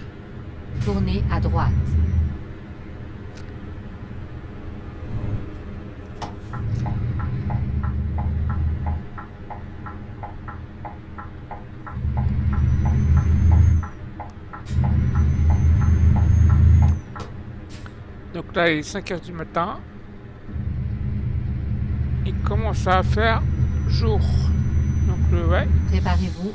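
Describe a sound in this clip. A truck engine rumbles and revs up and down.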